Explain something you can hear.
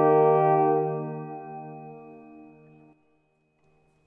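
A brass ensemble holds a final chord that rings out and fades in a large echoing hall.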